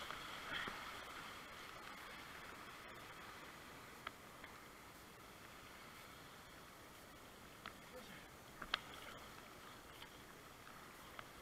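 A paddle blade splashes into the water.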